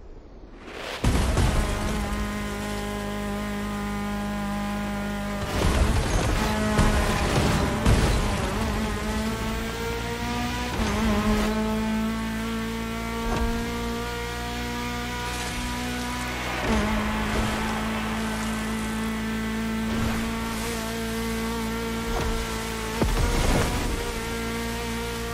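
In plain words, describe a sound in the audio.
A rally car engine roars steadily at high revs.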